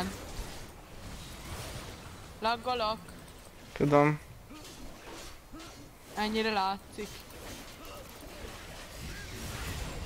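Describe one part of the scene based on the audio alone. Spell effects whoosh and crackle during a fight in a video game.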